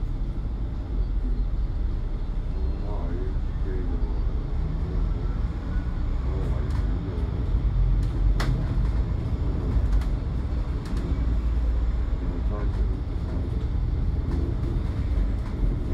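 A bus engine grows louder as the bus pulls away.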